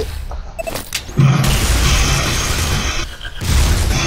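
An energy weapon fires with a crackling, buzzing blast.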